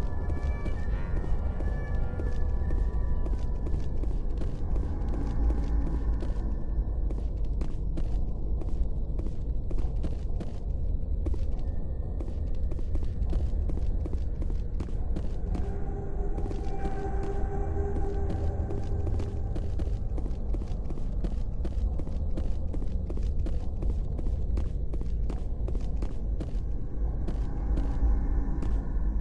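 Heavy boots thud steadily on a metal floor.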